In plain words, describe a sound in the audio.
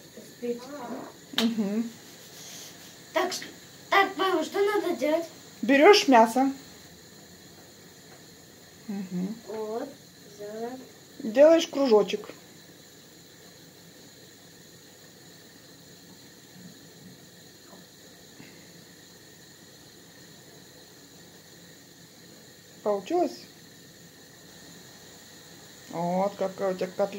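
A young boy talks nearby with animation.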